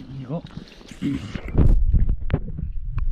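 Water sloshes and splashes loudly as something plunges in.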